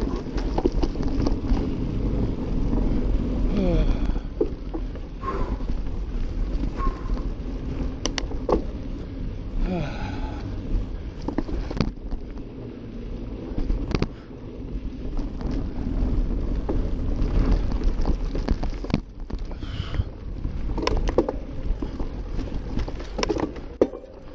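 Bicycle parts rattle and clatter over bumps.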